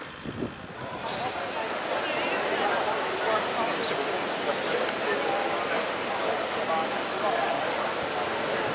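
A crowd of people chatters nearby in a busy street.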